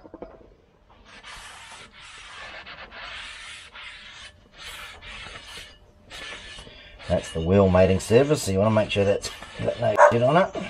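A cloth rubs and scrapes against a metal brake disc.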